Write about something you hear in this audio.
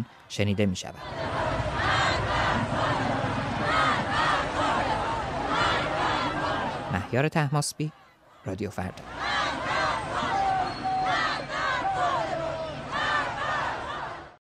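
A large crowd chants loudly in unison outdoors.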